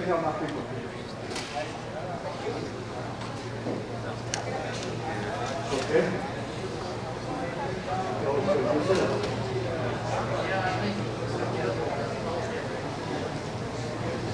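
A man speaks calmly to a group.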